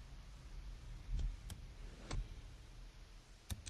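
A short menu click sounds as a window pops open.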